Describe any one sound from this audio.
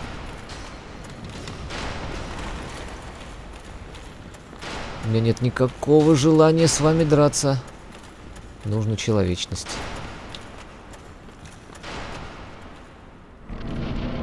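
Heavy armored footsteps run across a stone floor.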